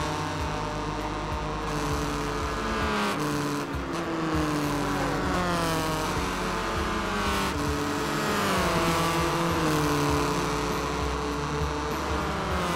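Racing car engines whine loudly, rising and falling in pitch as the cars shift gears.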